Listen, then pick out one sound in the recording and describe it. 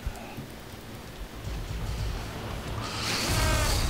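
A rocket whooshes past.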